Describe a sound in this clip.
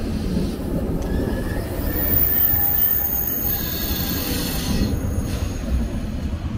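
A train's motors whine at a high pitch as the train passes.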